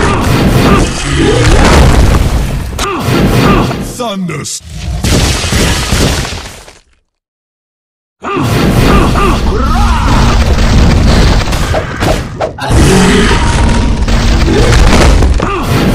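Slashing blows and magic blasts crash in a video game fight.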